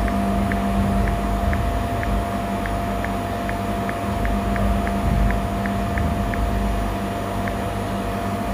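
Short keyboard clicks tick from a phone at an uneven pace.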